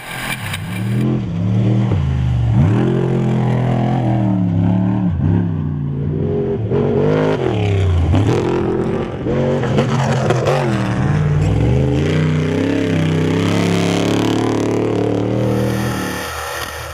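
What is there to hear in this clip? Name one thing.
A truck's engine revs up and down as the truck passes by.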